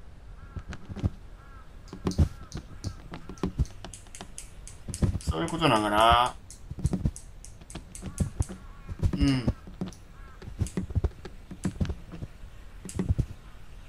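Footsteps knock softly on wooden slats.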